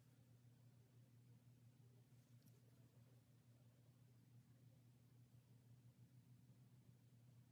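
A small brush strokes softly against skin and hair.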